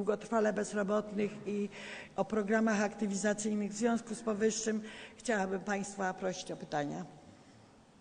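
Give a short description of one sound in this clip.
An elderly woman speaks firmly into a microphone.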